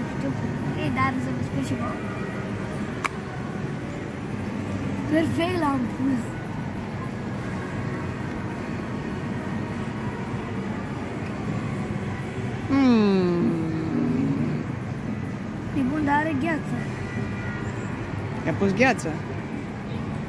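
A young girl talks and laughs nearby.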